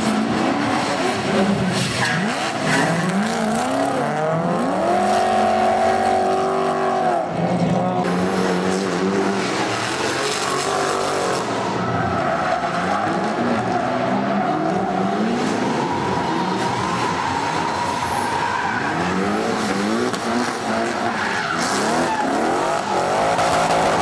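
Race car engines roar and rev hard.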